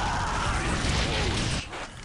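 An explosion roars with crackling fire.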